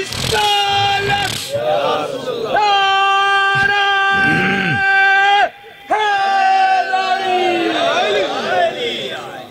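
A man chants loudly into a microphone in long, drawn-out tones, heard through a loudspeaker.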